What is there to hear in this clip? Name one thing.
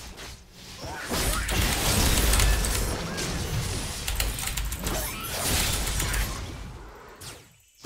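Game combat sounds clash and crackle with spell effects and hits.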